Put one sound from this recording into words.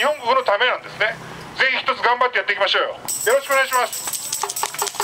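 A middle-aged man speaks loudly and forcefully into a microphone, heard through a loudspeaker outdoors.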